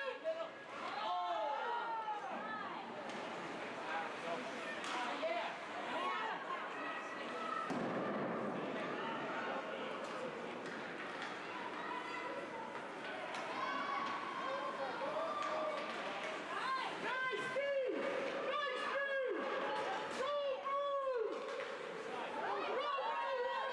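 Spectators shout and cheer from the stands.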